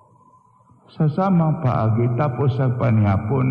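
An elderly man chants loudly through a microphone.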